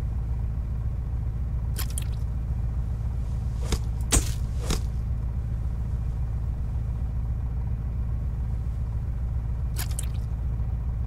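A large fish thuds onto a wooden deck.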